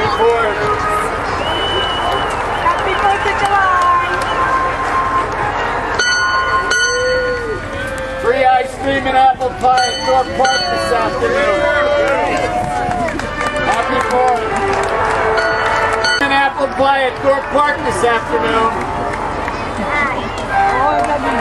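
A large outdoor crowd of adults and children chatters and calls out.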